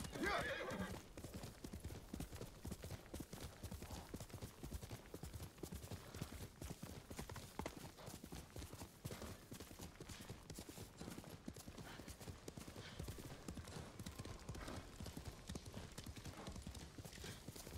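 A horse gallops, hooves thudding steadily on the ground.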